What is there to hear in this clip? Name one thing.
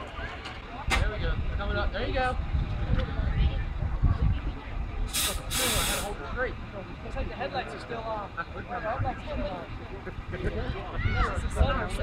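People talk and call out in the distance outdoors.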